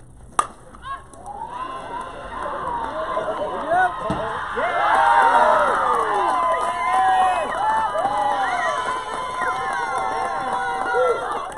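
A crowd of young women cheers and shouts excitedly outdoors.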